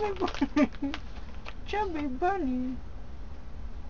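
A young woman speaks playfully close by, with a sing-song voice.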